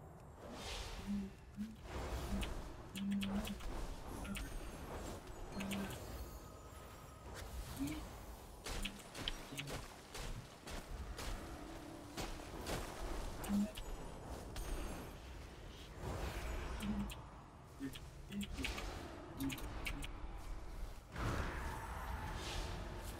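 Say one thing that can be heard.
Spell effects crackle and burst in a game battle.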